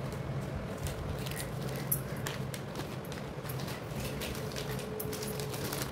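Foil wrappers rustle and crinkle under a hand.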